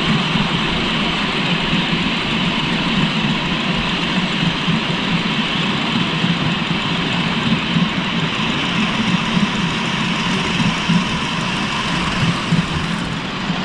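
Small train wheels rumble and clack over rail joints.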